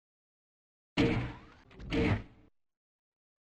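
A heavy metal door rumbles as it slides open.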